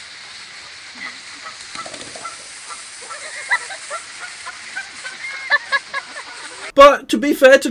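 A goose honks outdoors.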